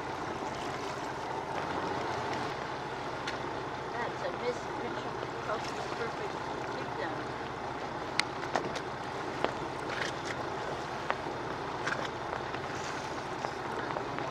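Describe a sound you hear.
Small waves lap and splash on the water.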